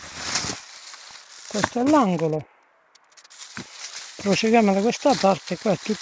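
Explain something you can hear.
Leaves rustle close by.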